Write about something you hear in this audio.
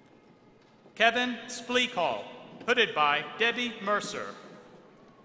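A man reads out through a microphone and loudspeakers in a large echoing hall.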